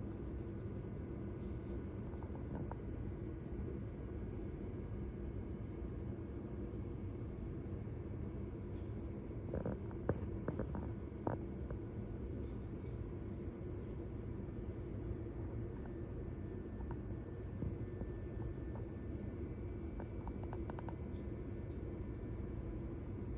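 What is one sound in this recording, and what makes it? Thin fabric rustles softly as a dancer moves on a stage floor.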